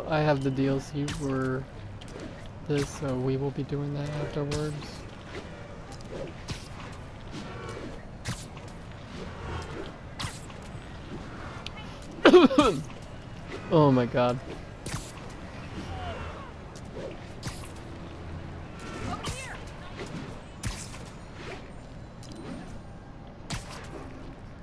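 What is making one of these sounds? Webs shoot out with sharp thwips again and again.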